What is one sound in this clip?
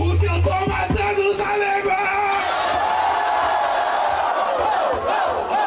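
A young man raps fast into a microphone through loudspeakers.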